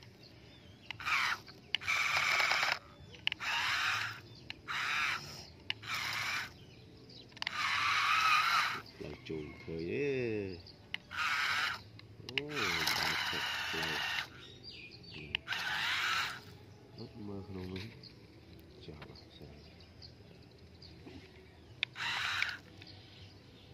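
A small toy truck's electric motor whirs in short bursts.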